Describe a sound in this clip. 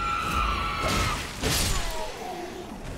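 A sword swings and strikes with a sharp clash.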